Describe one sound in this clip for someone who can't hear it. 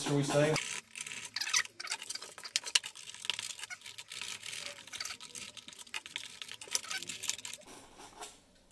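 A craft knife scrapes and tears through foam.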